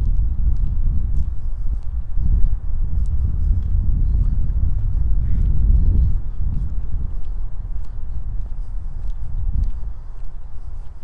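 Wind rumbles against a microphone outdoors, then eases off.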